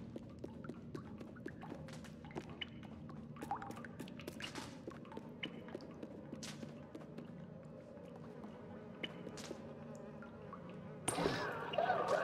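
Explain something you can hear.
Small footsteps patter softly on a wooden floor.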